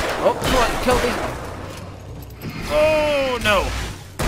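A flare bursts with a loud bang.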